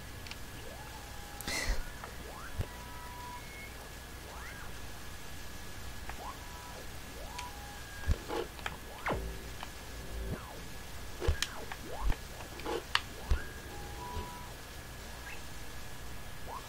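Gentle game music plays with soft chiming tones.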